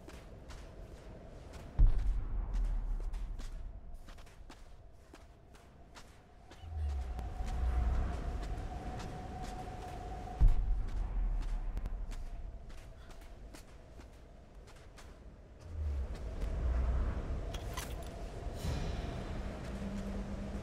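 Quick footsteps run over soft sand.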